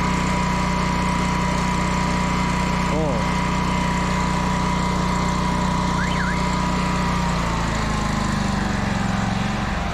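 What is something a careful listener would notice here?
A drain cleaning machine hums steadily.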